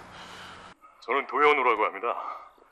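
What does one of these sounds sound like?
A woman speaks softly into a phone.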